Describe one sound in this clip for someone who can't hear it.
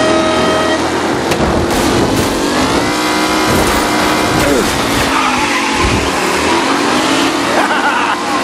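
A second racing car engine roars close by.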